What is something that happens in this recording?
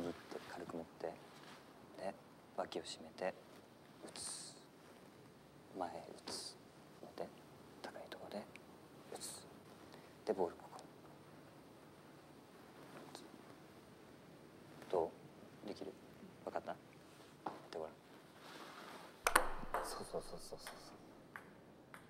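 A young man speaks gently and instructively, close by.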